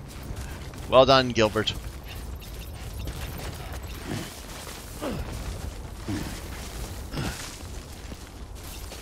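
Boots scuff and tread on grassy, rocky ground.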